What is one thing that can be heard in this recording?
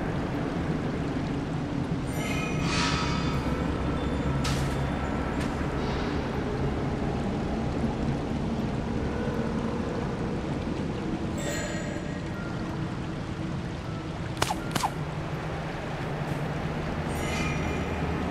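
A low, steady ambient drone plays throughout.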